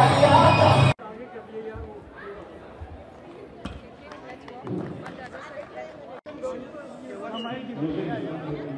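Children chatter and murmur in a large echoing hall.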